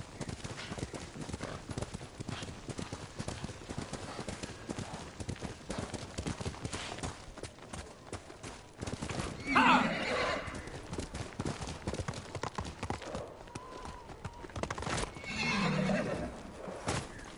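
A horse gallops, its hooves thudding rapidly on snow.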